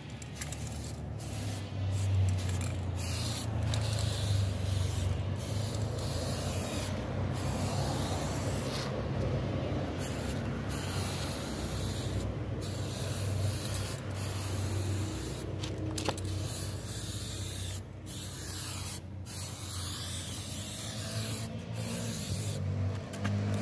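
An aerosol can sprays in short hissing bursts.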